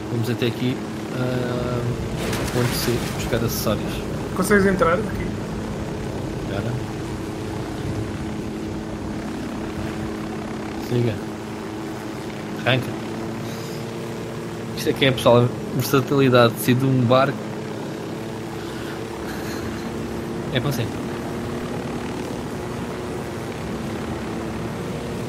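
A helicopter engine and rotor drone steadily.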